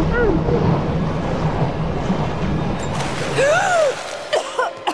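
Water rumbles and gurgles in a deep, muffled way, as if heard underwater.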